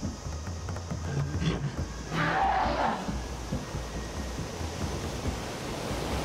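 Water rushes and splashes in a stream.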